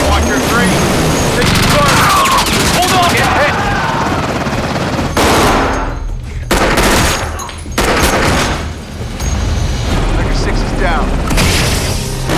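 A helicopter's rotors thud loudly.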